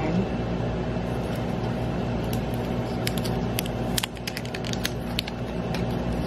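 A small plastic case clicks and taps in fingers.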